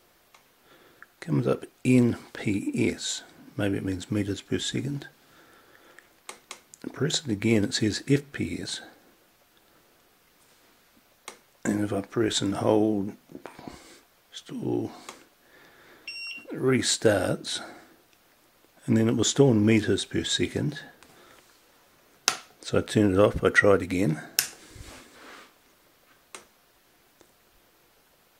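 A small button clicks a few times.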